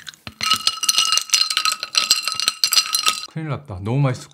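A fizzy drink crackles and fizzes in a glass.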